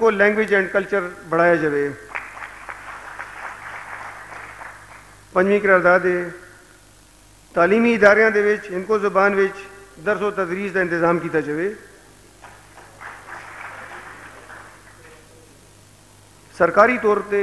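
A man recites in a melodic voice through a microphone, in pauses between lines.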